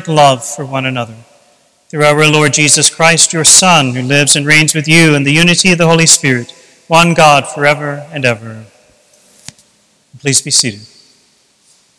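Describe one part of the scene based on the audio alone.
An older man chants aloud in a large echoing hall.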